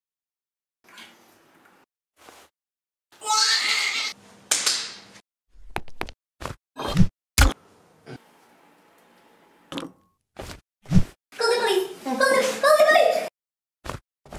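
A young man speaks with exaggerated, comic expression.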